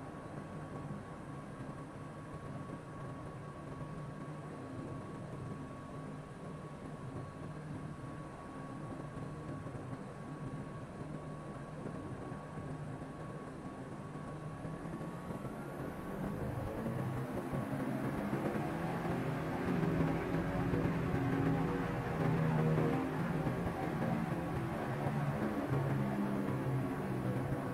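A jet engine hums steadily, then spools up into a loud, rising roar.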